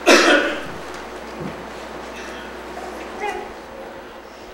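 An elderly man speaks through a microphone.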